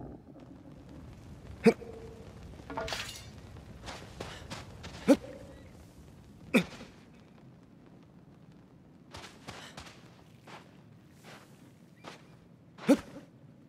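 Footsteps patter across stone and sandy ground.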